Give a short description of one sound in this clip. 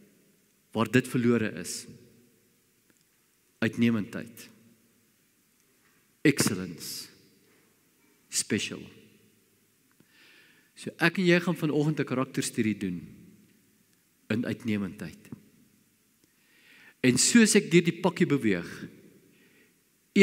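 An elderly man speaks with animation in short bursts through a microphone, with pauses between phrases.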